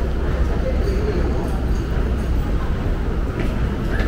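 Footsteps tap on a hard floor nearby.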